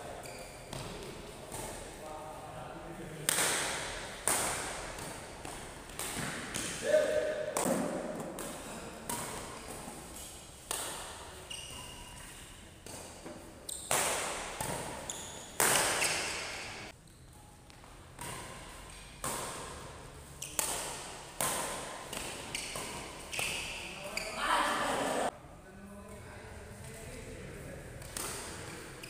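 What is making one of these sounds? Sneakers squeak and shuffle on the court floor.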